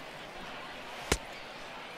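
A pitched baseball pops into a catcher's mitt.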